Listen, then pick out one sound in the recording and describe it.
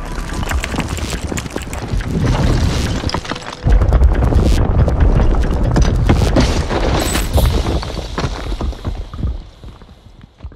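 Debris crashes and cracks as the buildings come down.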